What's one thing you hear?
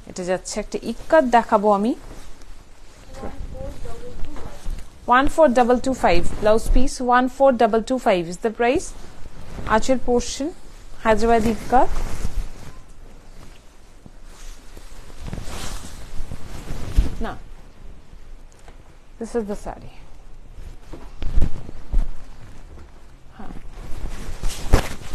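Silk fabric rustles as it is handled.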